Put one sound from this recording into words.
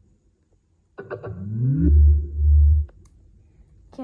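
A portable speaker plays a rising start-up sound followed by deep thumps.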